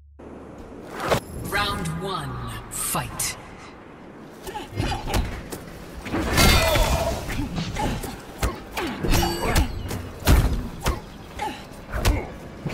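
Punches and kicks land with sharp thuds.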